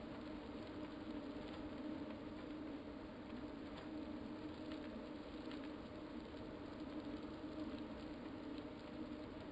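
A man breathes hard close to a microphone.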